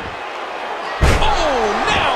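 A heavy thud booms as a wrestler slams onto the mat.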